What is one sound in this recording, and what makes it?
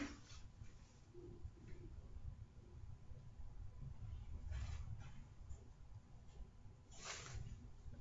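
Hair rustles softly as a young woman adjusts a wig.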